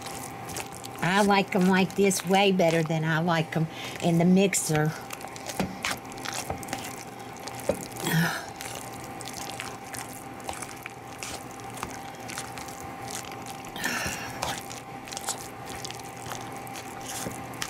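A potato masher squelches and thumps through soft potatoes in a bowl.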